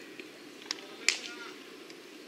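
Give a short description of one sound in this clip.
A baseball smacks into a leather glove.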